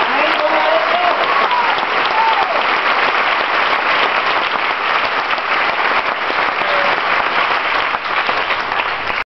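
A large crowd cheers and screams loudly, close by.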